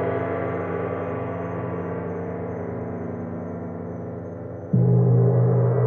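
A large gong hums and slowly fades.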